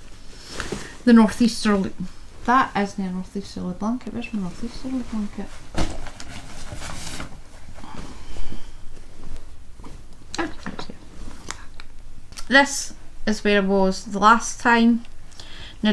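A middle-aged woman talks calmly close to a microphone.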